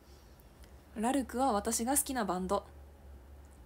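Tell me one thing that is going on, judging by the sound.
A young woman speaks briefly and with animation, close to a microphone.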